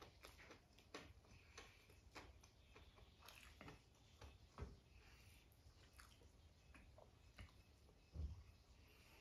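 A man mixes food with his fingers on a plate, with soft squelching and clicking sounds.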